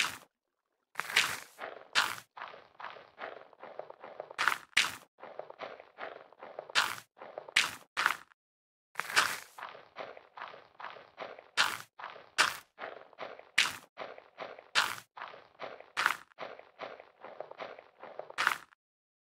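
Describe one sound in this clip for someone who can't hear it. Soft crackling taps of a game's bone meal effect repeat quickly, with a few sharper pops mixed in.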